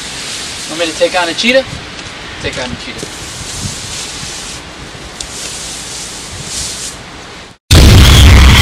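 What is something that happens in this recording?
A broom sweeps and scrapes across snow.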